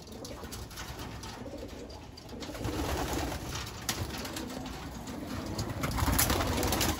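Pigeons coo softly.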